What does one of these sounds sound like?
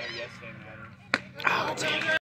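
A bat strikes a baseball with a sharp crack, outdoors.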